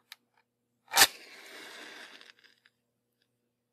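A match strikes sharply and flares up with a brief hissing rush.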